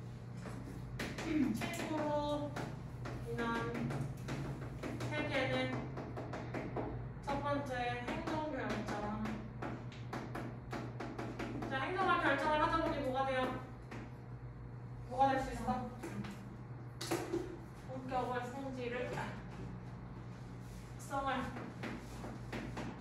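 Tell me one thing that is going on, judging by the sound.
A young woman speaks steadily through a microphone, as if lecturing.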